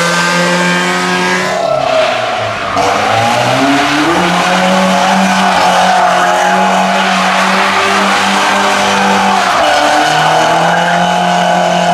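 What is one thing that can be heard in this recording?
A car engine roars and revs hard up and down.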